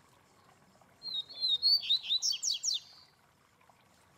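A small caged bird sings a short, bright burst of chirps and trills close by.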